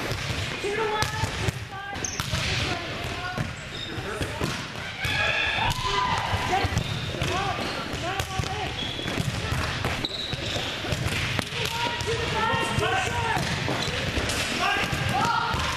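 A volleyball is served with a sharp slap.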